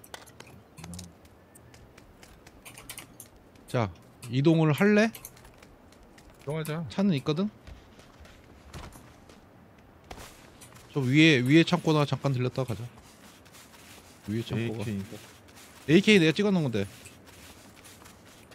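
Footsteps crunch quickly over dirt and concrete.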